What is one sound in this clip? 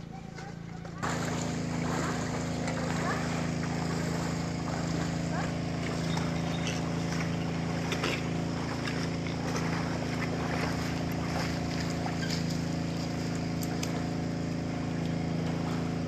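Feet slosh and splash through shallow muddy water.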